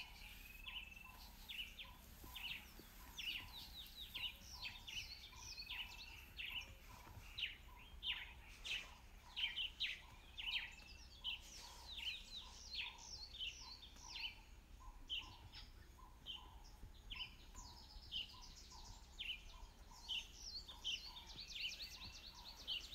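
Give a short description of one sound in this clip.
Dry grass rustles softly as lions walk through it.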